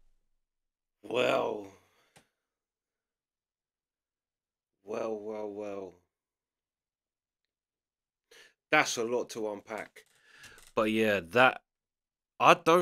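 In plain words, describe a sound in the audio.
A man speaks casually into a close microphone, in short bursts with pauses.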